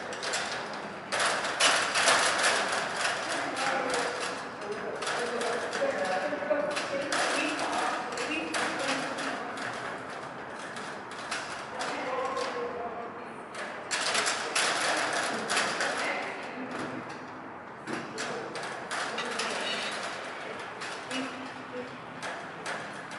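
A man talks encouragingly to a dog in a large echoing hall.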